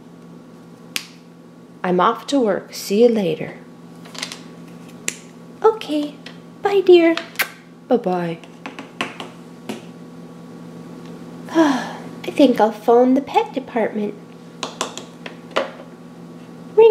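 Small plastic toys tap and click on a hard surface.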